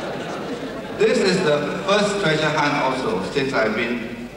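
A middle-aged man speaks over a microphone and loudspeakers.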